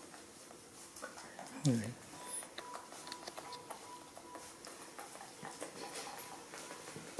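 A young woman talks playfully close by.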